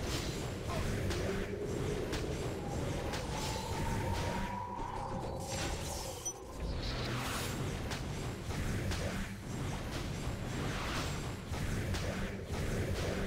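Sword slashes and magic blasts crash repeatedly in a fast fight.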